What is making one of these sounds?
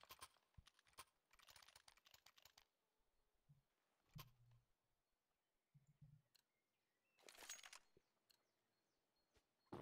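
A knife swishes through the air.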